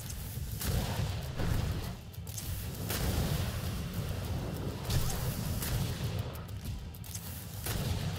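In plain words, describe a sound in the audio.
A gun fires sharp shots.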